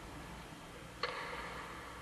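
A tennis racket strikes a ball with a sharp pop.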